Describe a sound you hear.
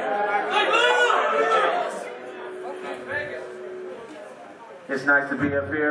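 A crowd of young men and women chatters nearby.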